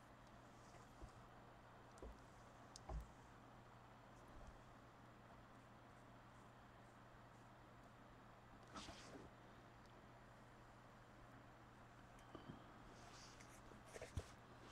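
A hard plastic shell knocks and scuffs softly as it is handled.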